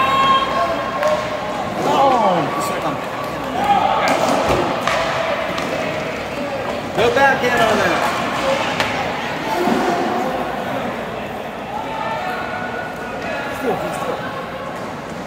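Skate blades scrape and hiss across ice in a large echoing rink.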